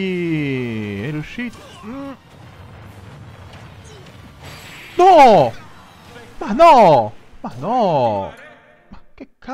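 Game fighters clash with loud blasts and bursts.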